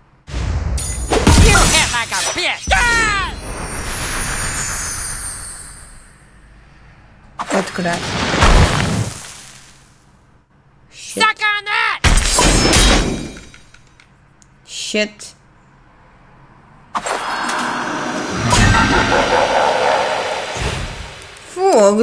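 Game sound effects whoosh and crackle.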